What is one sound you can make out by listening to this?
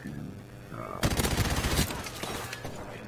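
A machine gun fires a rapid burst up close.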